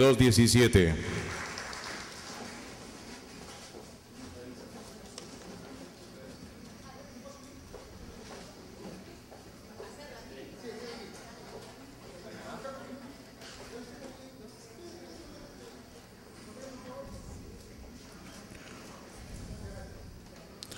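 An audience murmurs quietly in the background.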